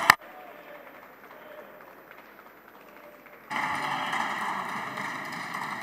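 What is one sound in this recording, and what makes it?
Many men and women murmur and talk quietly in a large echoing hall.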